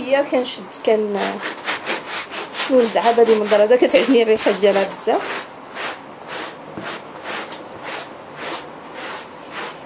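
A stiff brush scrubs a carpet with quick, rhythmic rasping strokes.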